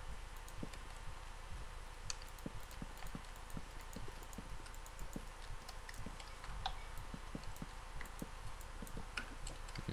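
Wooden blocks thud softly as they are placed, one after another.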